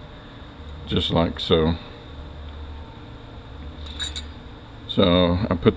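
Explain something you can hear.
Metal parts clink softly.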